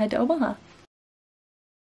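Two women talk with each other nearby.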